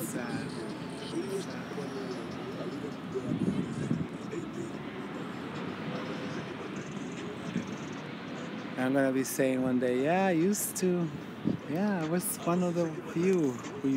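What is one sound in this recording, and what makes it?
Leaves rustle in a light breeze.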